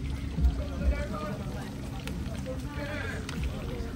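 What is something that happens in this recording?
Oil sizzles and bubbles in a frying pan.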